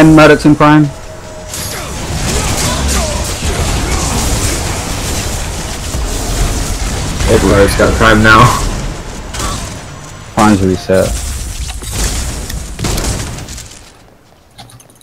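Magic blasts crackle and whoosh during a fight.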